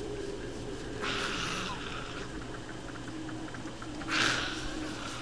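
Spiders hiss and screech in bursts.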